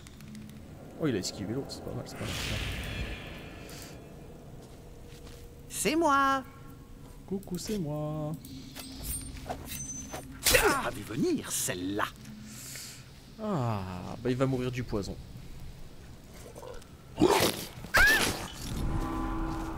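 Game spell effects burst and whoosh with sharp magical tones.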